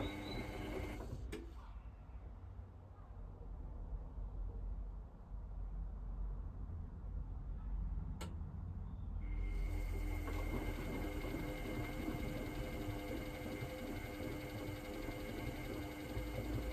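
A washing machine drum turns with a low rumbling hum.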